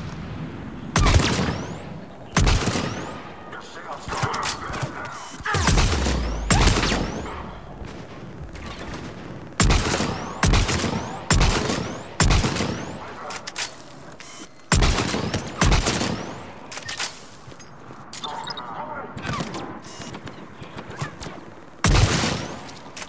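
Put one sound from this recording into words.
Sniper rifle shots crack loudly, one at a time, with a ringing echo.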